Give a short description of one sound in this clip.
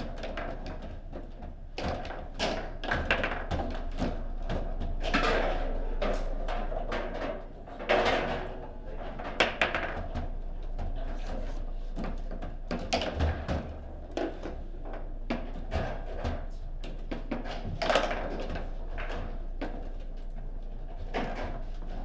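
Foosball rods clatter as players spin and slide them.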